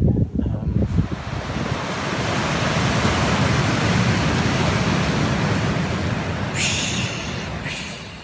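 Waves wash steadily onto a pebbly shore.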